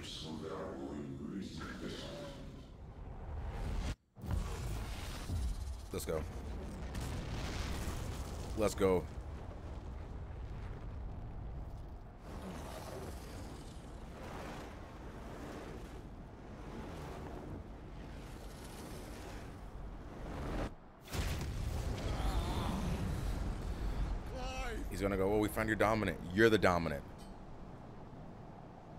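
A man talks into a headset microphone, reacting with animation.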